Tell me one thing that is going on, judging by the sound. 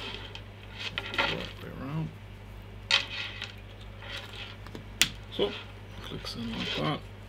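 Metal clips clink and rattle as a strap is handled.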